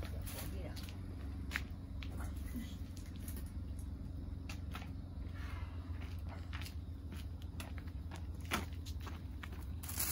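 Footsteps scuff on paving.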